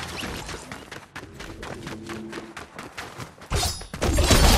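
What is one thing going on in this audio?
Quick footsteps patter on hard ground.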